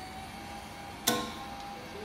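A card clicks against a card reader.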